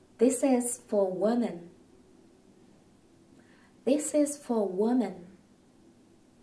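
A young woman speaks clearly and slowly into a close microphone, pausing between two short phrases.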